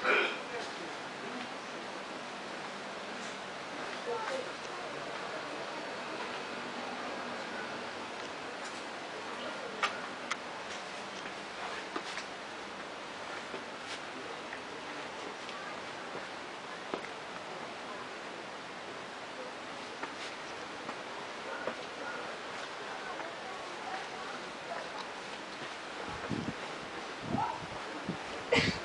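Footsteps scuff and tap on stone paving and steps.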